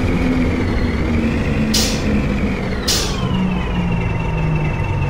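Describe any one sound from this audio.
A bus engine whines and winds down.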